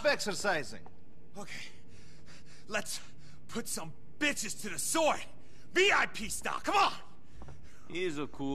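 A young man shouts excitedly.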